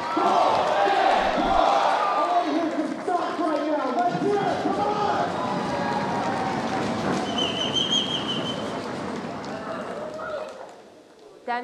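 A large crowd cheers and shouts loudly in an echoing hall, then quiets down.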